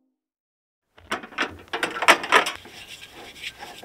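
A metal gas canister clanks and rattles as it is handled.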